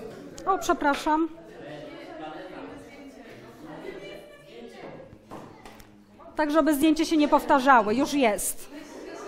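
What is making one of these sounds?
A young woman speaks clearly and with animation close by.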